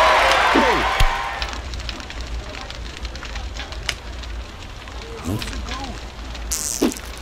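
Soft game clicks and pops sound now and then.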